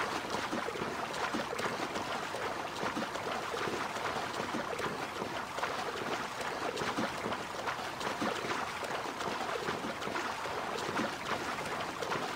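Water splashes steadily as a swimmer strokes through the sea.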